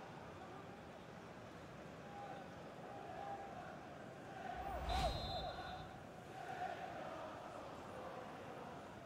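A large crowd roars and chants in a stadium, swelling briefly.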